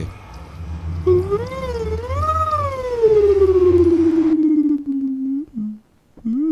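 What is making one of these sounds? A portal hums and whooshes with a warbling, falling tone.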